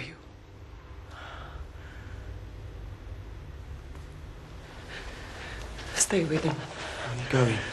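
A woman speaks tearfully and pleads with emotion.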